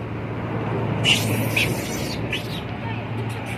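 A monkey gives short, high squeaks nearby.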